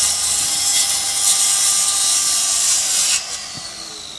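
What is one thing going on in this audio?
A circular saw cuts through wood with a loud, high whine.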